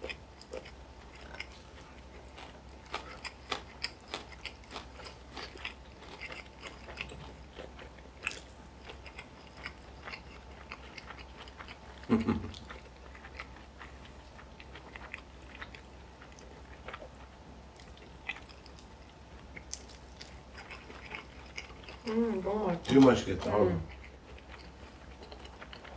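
Two people chew food and smack their lips close by.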